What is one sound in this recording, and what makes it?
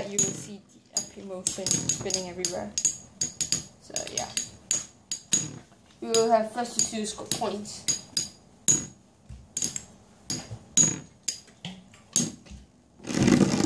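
Spinning tops clash and clink sharply against each other.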